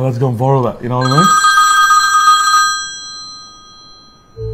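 A phone rings with an electronic tone.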